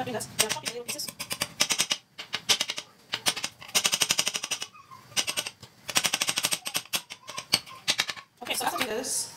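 A knife chops rapidly on a hard board.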